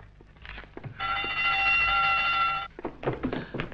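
An electric bell rings loudly and steadily.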